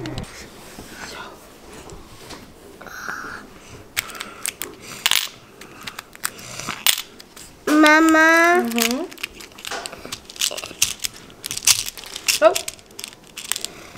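Plastic beads rattle and click as a child's hand sorts them.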